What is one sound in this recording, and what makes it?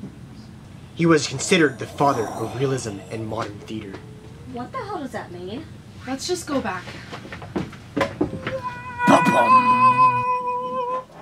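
A young woman talks excitedly nearby.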